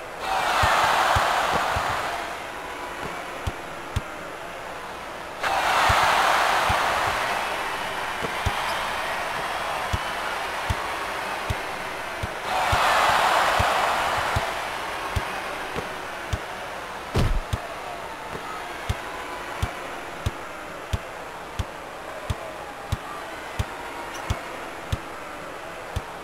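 A basketball bounces on a hard court in steady dribbles.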